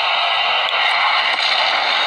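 A loud explosion roars and crackles.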